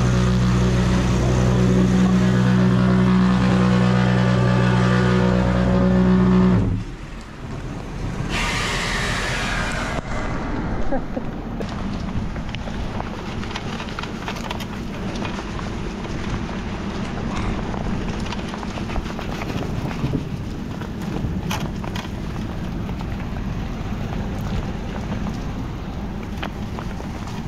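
Rain patters steadily on wet ground.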